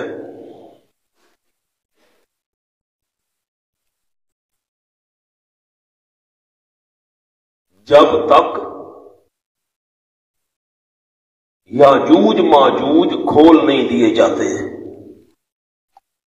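A man speaks into a microphone in short bursts, with long pauses.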